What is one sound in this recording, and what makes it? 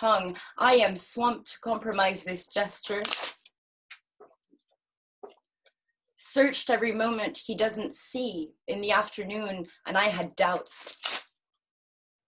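A young person reads aloud with animation, close to a microphone.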